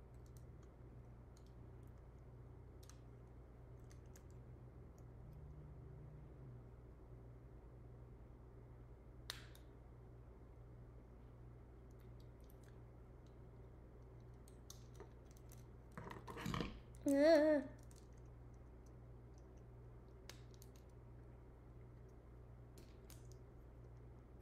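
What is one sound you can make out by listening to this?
Small plastic pieces click softly as they are handled.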